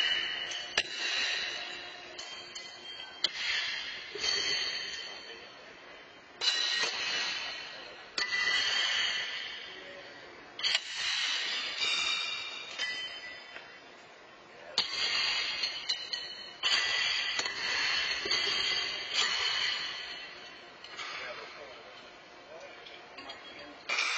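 Horseshoes clang against steel stakes in a large echoing arena.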